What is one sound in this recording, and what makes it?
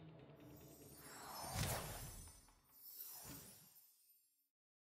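A whooshing sweep rises and fades.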